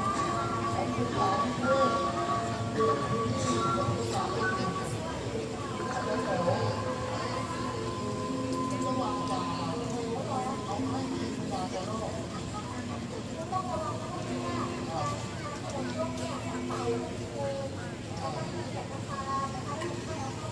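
A band plays a slow tune outdoors.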